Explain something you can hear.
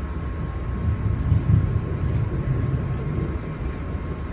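A train rattles over a short bridge.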